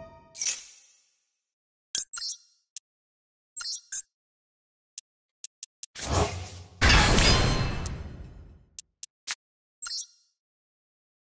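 Short electronic clicks and chimes sound.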